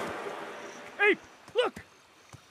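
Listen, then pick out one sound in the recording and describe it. A man exclaims briefly.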